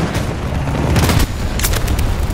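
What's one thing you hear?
A large explosion booms close by.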